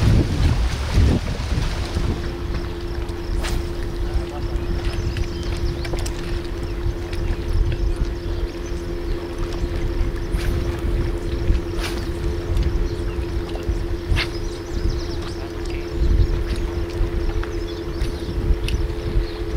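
Water rushes and splashes over rocks nearby.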